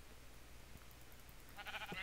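A sheep bleats.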